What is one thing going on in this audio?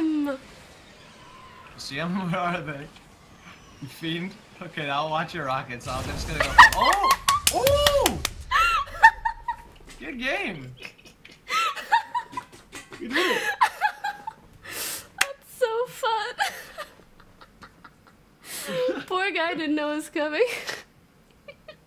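A young woman talks excitedly and laughs into a close microphone.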